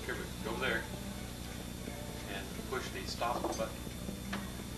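An older man talks animatedly nearby.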